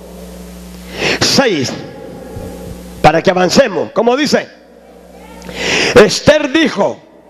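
A woman speaks through a loudspeaker in a large echoing hall, reading out steadily.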